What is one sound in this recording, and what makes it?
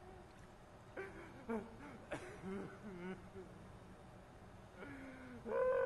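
A man sobs and sniffles.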